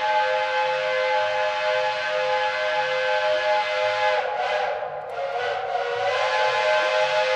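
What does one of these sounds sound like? A diesel locomotive engine roars loudly at full throttle.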